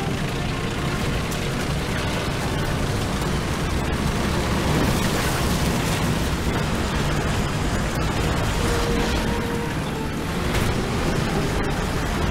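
Tank tracks clank and squeak over the ground.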